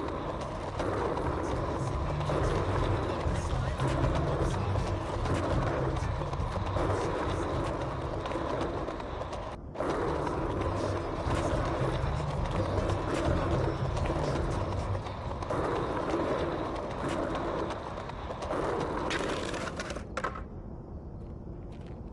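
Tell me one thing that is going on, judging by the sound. Skateboard wheels roll and rumble over paving stones.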